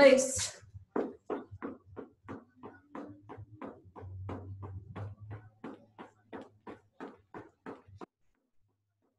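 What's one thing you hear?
Feet thump quickly and evenly on a floor.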